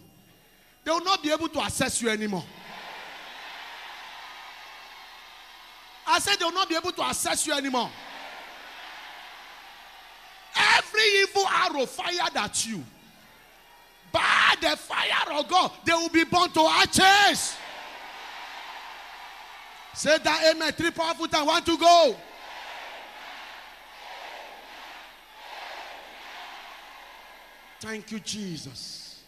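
A man preaches loudly and with passion through a microphone, in short shouted bursts.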